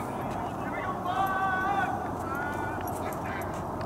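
A man calls out across an open field.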